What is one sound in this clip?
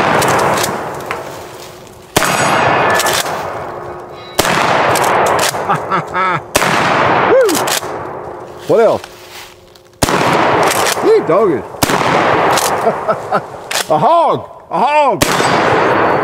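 A shotgun fires loud blasts that echo through the woods.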